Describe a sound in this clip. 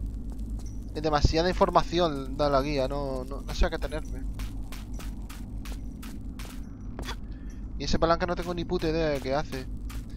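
Footsteps run quickly over stone and grass.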